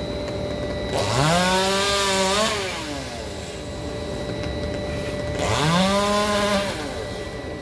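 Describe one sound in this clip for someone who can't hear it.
A chainsaw revs up loudly high in a tree, in bursts.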